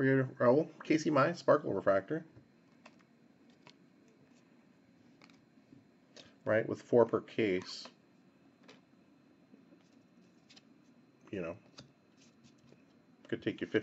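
Trading cards slide and flick against each other as a stack is shuffled through.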